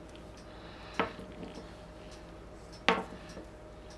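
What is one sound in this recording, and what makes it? A canvas board knocks lightly against a hard surface.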